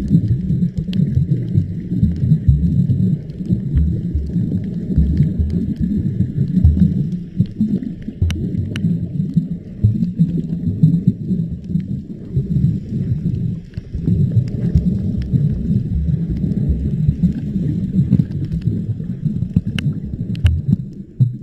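Water rushes and rumbles in a low, muffled way, close by.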